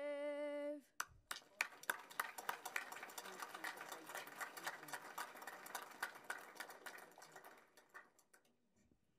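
A crowd applauds in a large room.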